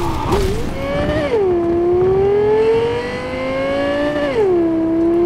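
A car engine roars at high revs, rising in pitch and dropping sharply with each gear change.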